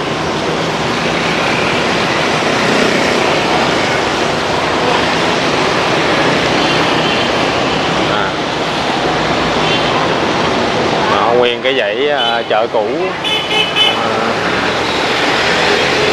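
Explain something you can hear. Motorbike engines hum and buzz steadily along a busy street.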